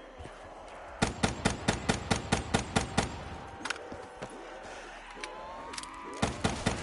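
A gun fires rapid shots in quick bursts.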